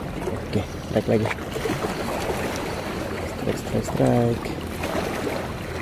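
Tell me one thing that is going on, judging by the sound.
A fishing reel clicks and whirs as its handle is cranked.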